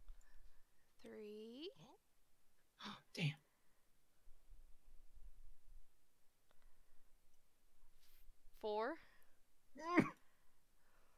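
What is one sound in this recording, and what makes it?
A young woman speaks with animation close to a microphone.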